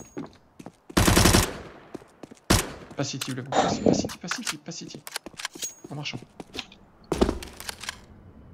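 Gunfire bursts in a video game.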